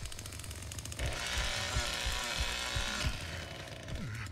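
A chainsaw buzzes loudly.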